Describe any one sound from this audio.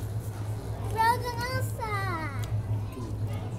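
A young girl speaks in a high voice close by.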